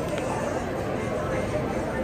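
A busy street crowd murmurs in the background.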